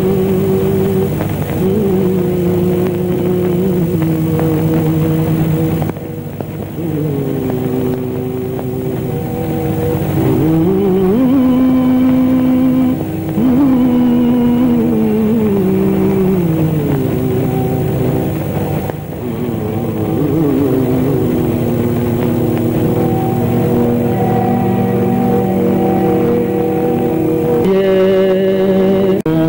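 A harmonium plays a steady melody.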